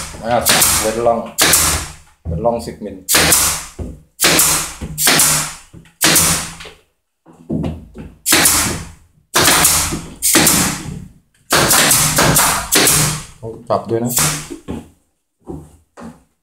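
A pneumatic nail gun fires with sharp hissing bangs.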